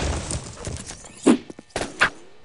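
A blade swishes through the air and slashes.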